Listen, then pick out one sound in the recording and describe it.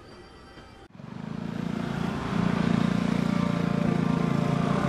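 Motorbikes and cars drive past with engines humming loudly.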